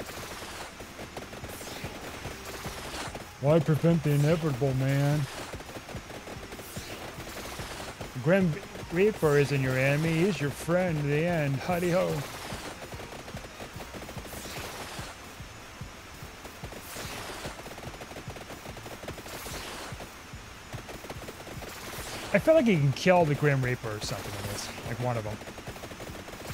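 Rapid electronic blips and zaps of game weapons firing go on throughout.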